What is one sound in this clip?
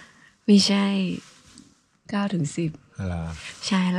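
A young man speaks briefly close by.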